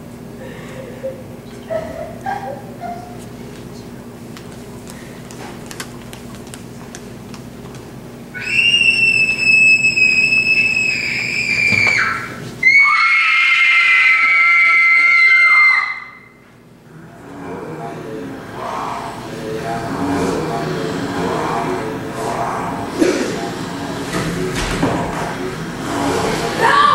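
An audience murmurs quietly in a large hall.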